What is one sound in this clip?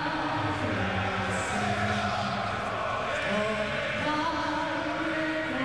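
A singer sings slowly through loudspeakers in a large echoing hall.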